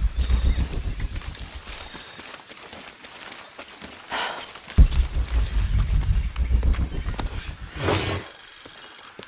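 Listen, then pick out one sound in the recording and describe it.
Footsteps scuff and rustle through undergrowth.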